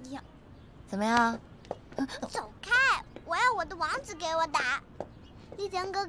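A young girl speaks excitedly in a high voice.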